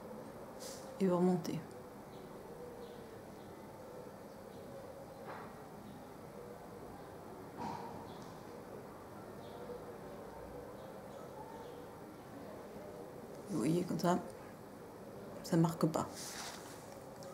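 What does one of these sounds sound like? A young woman speaks a few short words calmly, close by.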